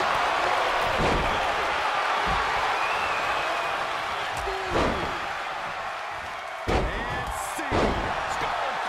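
Heavy bodies slam onto a wrestling ring mat with loud thuds.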